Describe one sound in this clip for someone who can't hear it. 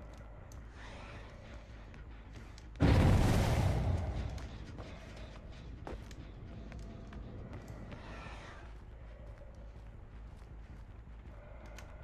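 Heavy footsteps pace steadily on hard floors.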